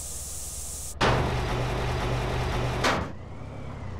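A garage door rattles as it rolls open.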